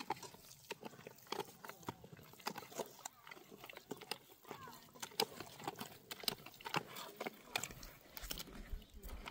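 A hand scoops wet mud in a metal bucket, with squelching and scraping.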